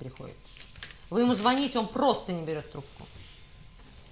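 A woman speaks with expression, close by.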